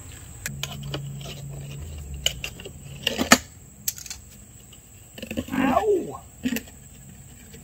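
Metal parts clink and knock in a car engine.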